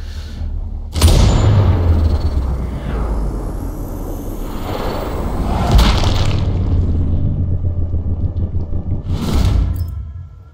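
A bullet whooshes through the air.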